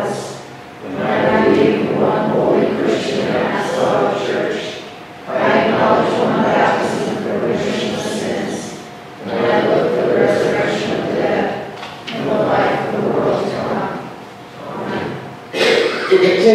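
A man speaks steadily through a microphone in a large echoing hall.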